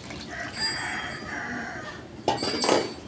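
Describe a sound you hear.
Liquid pours into a metal pan.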